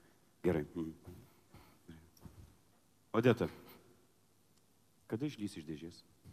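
A man speaks with animation, amplified through a microphone.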